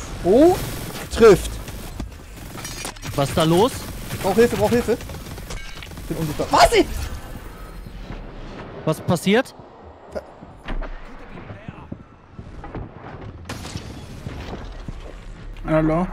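Gunfire and energy blasts crackle from a game.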